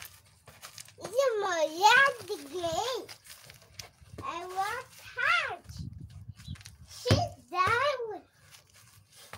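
A young child squeals and babbles in a high voice nearby.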